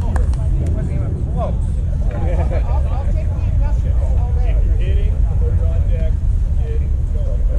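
Young men call out to each other in the distance.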